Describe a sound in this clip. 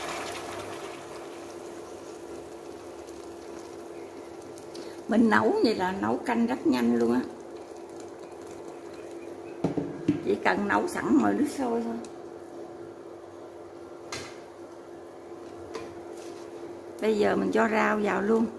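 Water bubbles at a boil in a pot.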